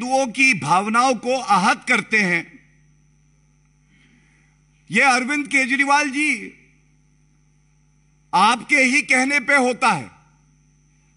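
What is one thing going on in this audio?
A man speaks forcefully into a microphone, in short bursts with pauses.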